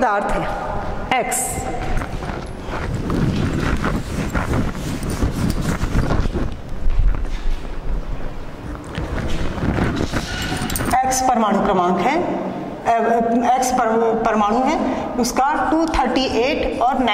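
A woman speaks clearly.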